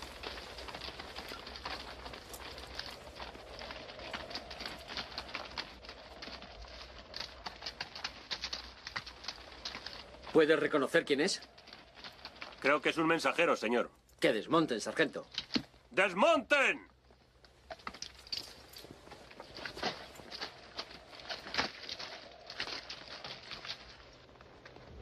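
Horses' hooves clop as they walk on rocky ground.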